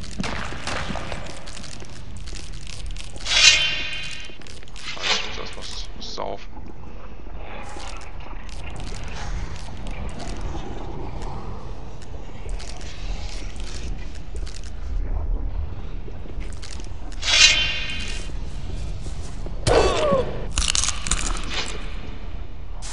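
Armoured footsteps thud on stone.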